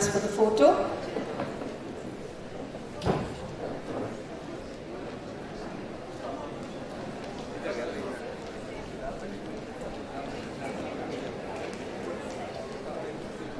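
A crowd of people chatters quietly in a large hall.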